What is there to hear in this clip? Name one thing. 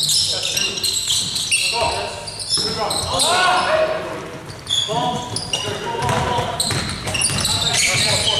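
Young men call out to each other in an echoing gym.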